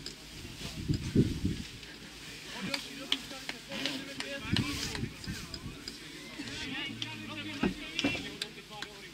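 Men shout to each other in the distance, outdoors.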